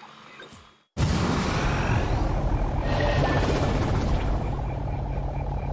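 A small flying saucer hums and whirs loudly.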